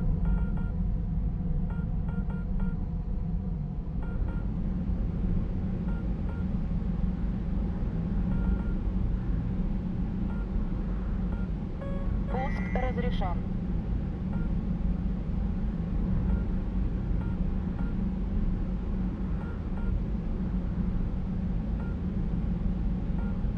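A jet engine roars steadily from inside the cockpit.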